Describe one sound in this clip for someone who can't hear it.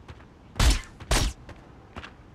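Two loud gunshots ring out.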